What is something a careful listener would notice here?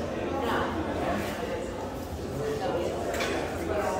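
A man speaks into a microphone, heard through a loudspeaker in a room.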